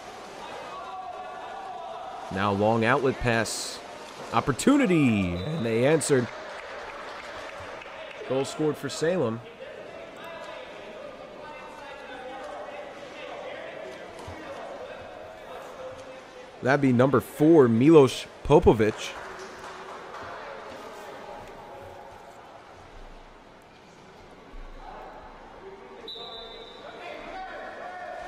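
Swimmers splash and thrash through water in an echoing indoor pool.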